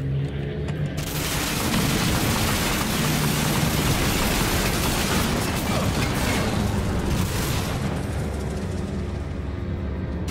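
A mounted machine gun fires in loud rapid bursts.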